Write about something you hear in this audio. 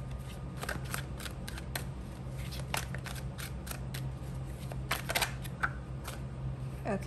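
Playing cards riffle and click as a deck is shuffled.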